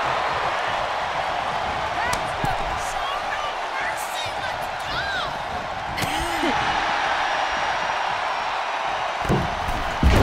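A large crowd cheers and roars steadily in a big arena.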